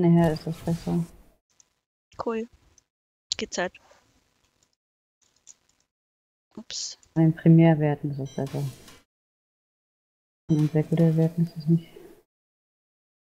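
A woman speaks calmly into a close microphone, in short bursts.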